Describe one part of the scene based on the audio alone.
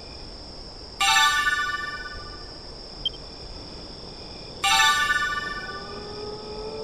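A bright jingle chimes twice.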